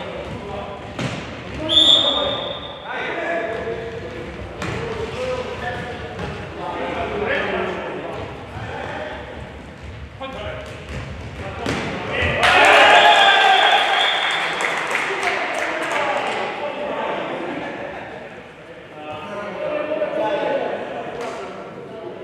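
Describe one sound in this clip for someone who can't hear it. A ball is kicked with hard thuds.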